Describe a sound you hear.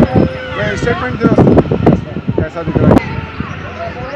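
A baby cries loudly.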